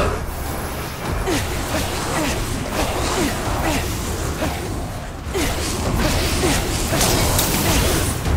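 Magical energy crackles and whooshes loudly.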